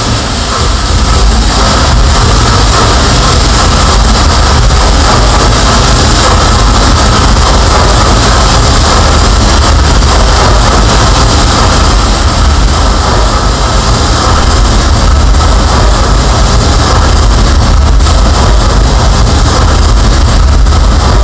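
Dense, distorted harsh noise roars through a contact-miked performance without letup.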